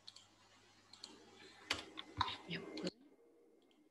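A young woman speaks briefly and calmly over an online call.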